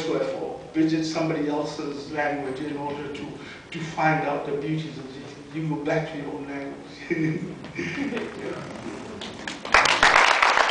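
An elderly man speaks warmly through a microphone.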